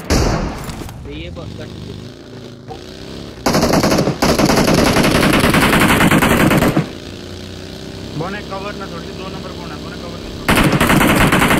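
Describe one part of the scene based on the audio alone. A buggy engine roars as it drives.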